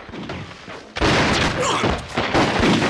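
Gunshots crack loudly.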